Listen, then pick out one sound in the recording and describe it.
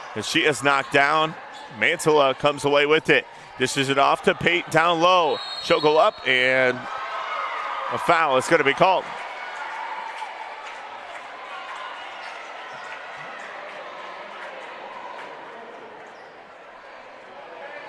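A crowd murmurs in an echoing gym.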